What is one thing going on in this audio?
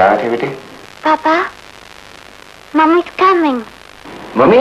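A young boy speaks into a phone.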